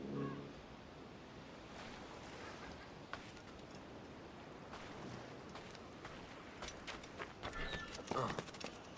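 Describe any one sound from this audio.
Waves lap gently at a shore.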